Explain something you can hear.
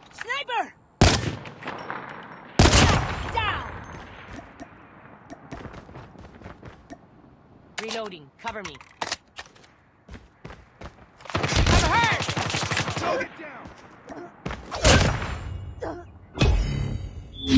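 Sniper rifle shots ring out with a sharp crack.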